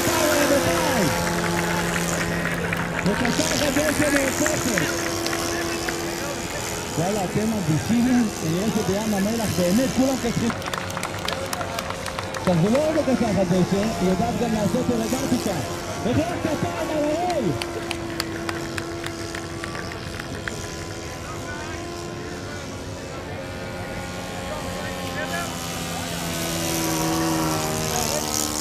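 A small engine drones steadily overhead.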